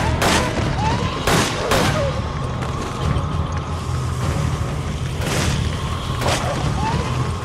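Gunshots ring out in sharp single bursts.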